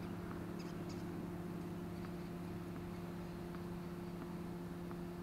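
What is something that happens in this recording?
A tennis ball bounces on a hard court in the distance.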